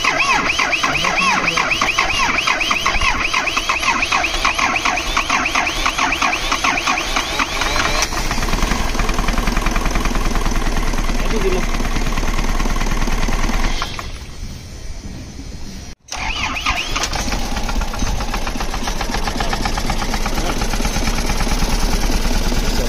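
A car engine idles with a rapid, steady ticking rattle.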